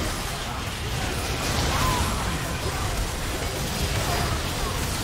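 Game spell effects crackle and whoosh in a busy fight.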